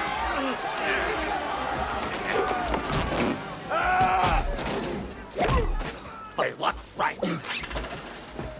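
A man screams in pain close by.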